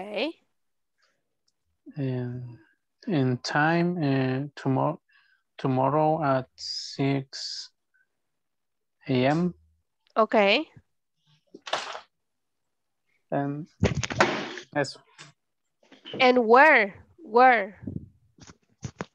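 A young woman speaks calmly and clearly over an online call, in short phrases with pauses.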